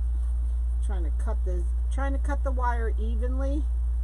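Scissors snip through ribbon.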